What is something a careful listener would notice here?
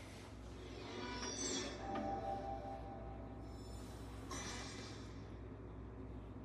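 A shimmering magical chime rings softly.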